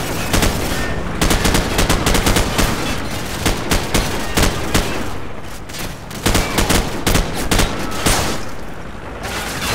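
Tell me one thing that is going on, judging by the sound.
Gunfire rattles in rapid bursts, echoing off walls.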